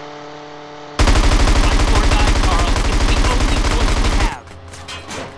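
A machine gun fires in a rapid, loud burst.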